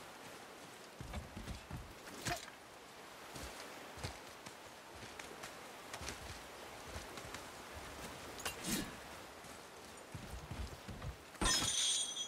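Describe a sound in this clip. Heavy thuds and scrapes sound against rock.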